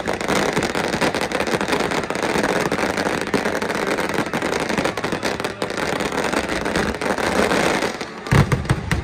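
Fireworks crackle and fizzle loudly in a dense, continuous barrage outdoors.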